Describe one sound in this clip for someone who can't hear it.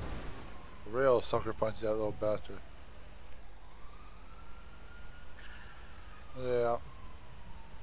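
A man speaks briefly and casually, close to a microphone.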